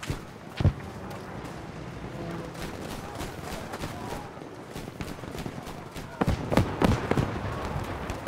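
Gunshots boom loudly in quick bursts.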